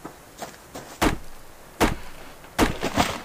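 An axe chops into a tree trunk with sharp knocks.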